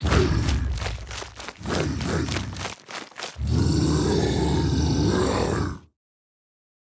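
A huge dinosaur roars and growls loudly.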